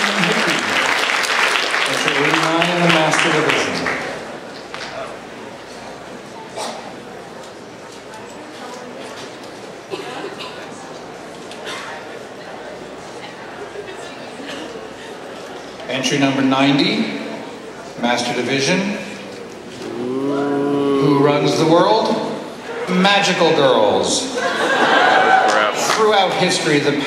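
A man speaks into a microphone over a loudspeaker in a large echoing hall, in a theatrical voice.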